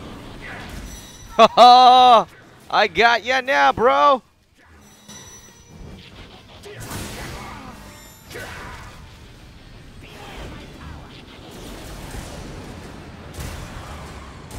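Energy blasts and explosions boom in quick succession.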